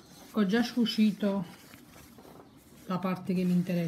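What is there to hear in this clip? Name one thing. Denim fabric rustles as a hand handles it.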